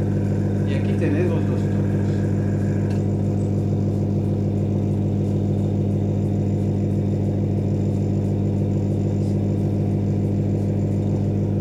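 An airbrush hisses softly as it sprays paint.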